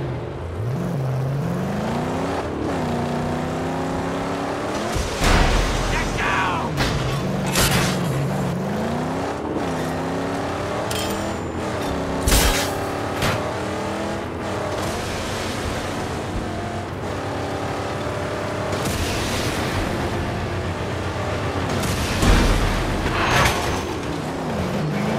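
Cars crash together with loud metallic bangs.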